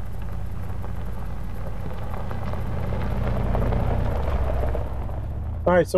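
Tyres crunch over gravel and dry leaves.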